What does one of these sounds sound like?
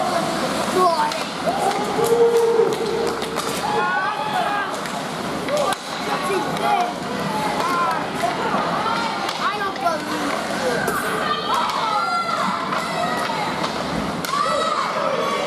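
Young players shout to each other across the rink.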